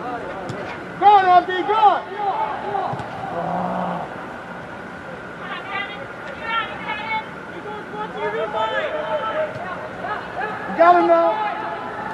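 Young male players shout to each other across an echoing indoor hall.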